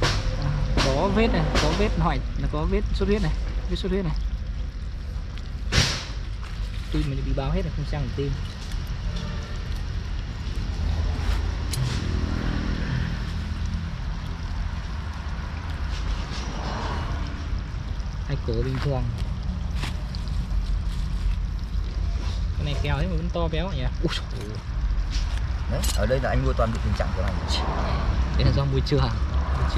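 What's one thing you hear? A woman talks casually close by.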